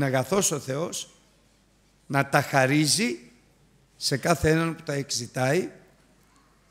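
A middle-aged man speaks emphatically into a microphone, in short bursts with pauses.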